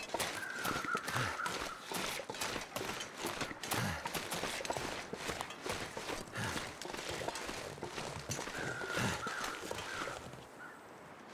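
Footsteps crunch steadily through deep snow.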